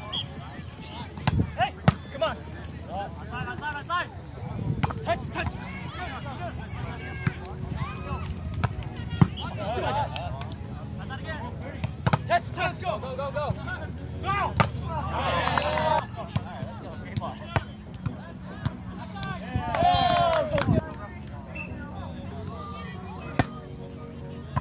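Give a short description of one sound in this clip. A volleyball thumps sharply as players hit it.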